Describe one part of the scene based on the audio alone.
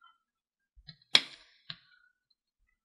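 Mahjong tiles click sharply against each other on a table.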